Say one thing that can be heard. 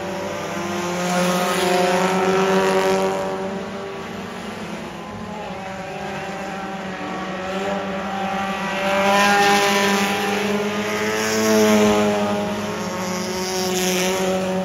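Race car engines roar and rise and fall in pitch as cars speed past.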